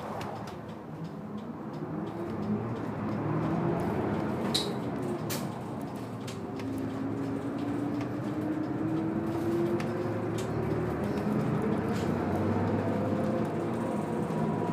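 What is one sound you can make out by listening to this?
A bus engine roars and rises in pitch as the bus pulls away and speeds up.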